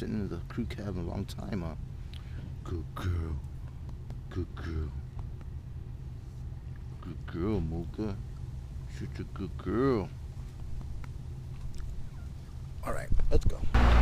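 A small dog whines close by.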